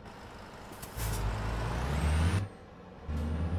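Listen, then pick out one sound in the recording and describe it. A passing truck roars by close alongside.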